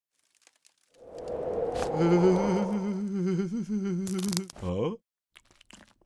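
A man cries out in fright, his voice wavering.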